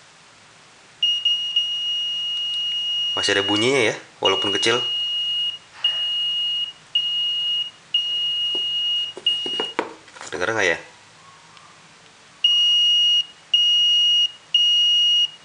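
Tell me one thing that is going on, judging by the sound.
A small electronic tester gives a high, steady beep that breaks off and returns, then beeps in short, even pulses.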